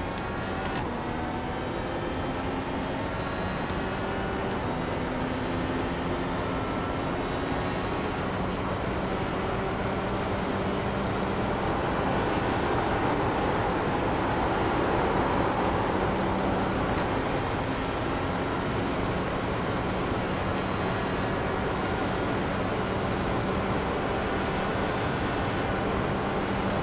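A racing car engine drones at high revs, its pitch rising and falling with the gears.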